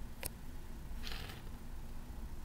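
A small toy car is picked up off a hard surface with a brief scrape.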